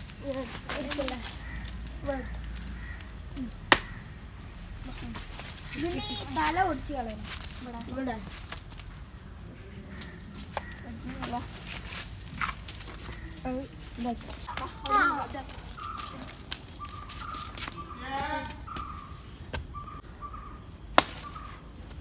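Children talk and call out nearby, outdoors.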